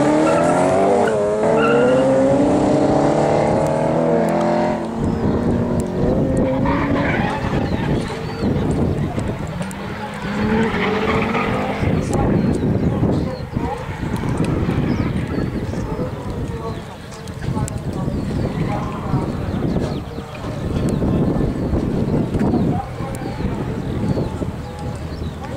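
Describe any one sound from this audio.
Drift car engines rev hard in the distance.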